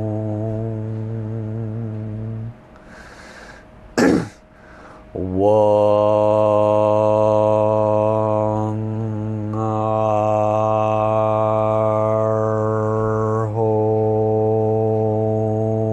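A middle-aged man chants a long, low, steady tone close to a microphone.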